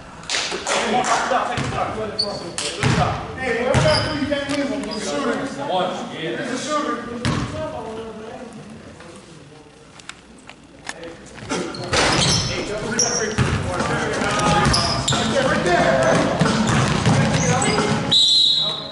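A basketball bounces on a wooden court in a large echoing gym.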